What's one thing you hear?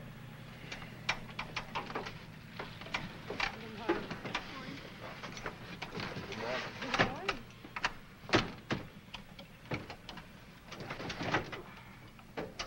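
Switches click and knock repeatedly.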